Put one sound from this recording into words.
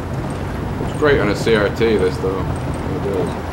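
A man speaks calmly inside the car.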